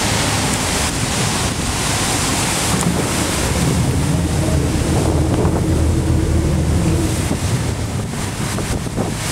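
Strong wind blusters loudly across the microphone outdoors.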